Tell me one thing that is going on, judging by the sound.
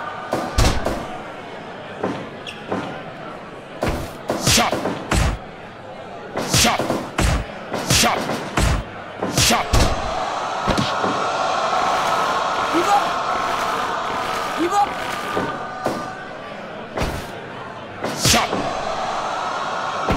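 A crowd cheers and roars steadily.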